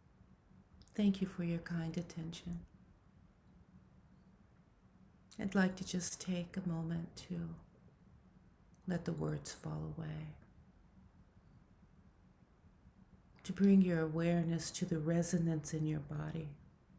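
A woman speaks calmly in short bursts over an online call, with pauses between.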